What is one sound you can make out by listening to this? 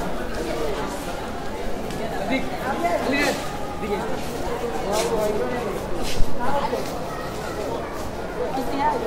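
A crowd of men and women chatter and shout nearby.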